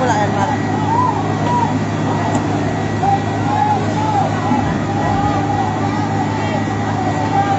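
A crowd of people shouts and murmurs at a distance outdoors.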